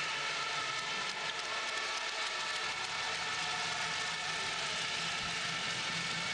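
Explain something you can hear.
A large crowd cheers and chants steadily in a big echoing arena.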